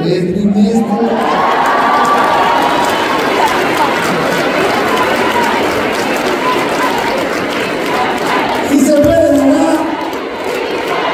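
A crowd applauds and cheers.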